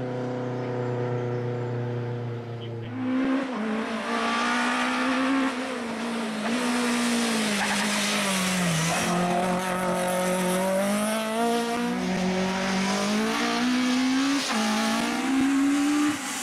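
A rally car engine revs hard and roars past, its pitch rising and falling with gear changes.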